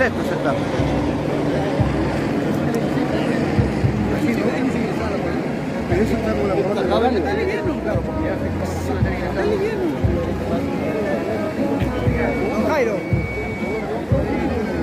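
A large crowd murmurs and chatters loudly outdoors.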